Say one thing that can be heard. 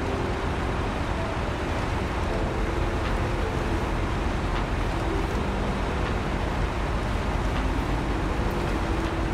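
A heavy truck engine rumbles steadily as the truck drives over rough ground.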